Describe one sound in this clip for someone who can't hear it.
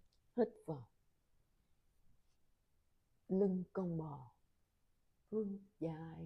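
A woman speaks calmly and close by, giving slow instructions.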